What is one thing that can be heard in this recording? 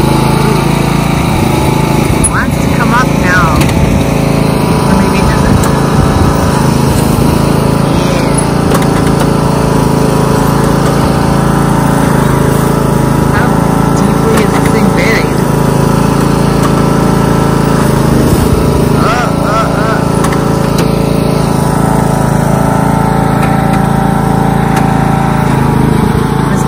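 A lawn tractor engine drones steadily close by.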